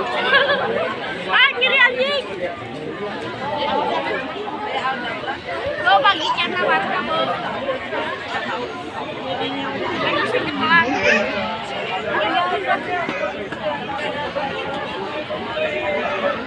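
A crowd of men and women chatters loudly close by, outdoors.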